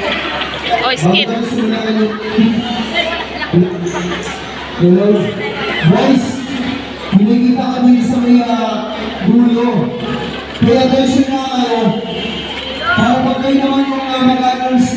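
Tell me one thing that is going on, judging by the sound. A crowd of children sings together loudly.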